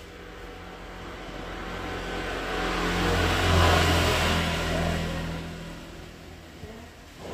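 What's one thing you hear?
A motorbike passes by nearby.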